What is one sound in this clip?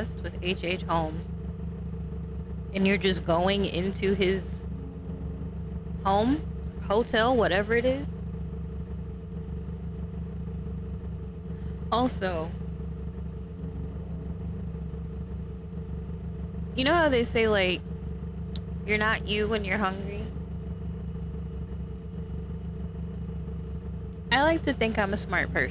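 A young woman talks with animation close to a microphone, in short bursts.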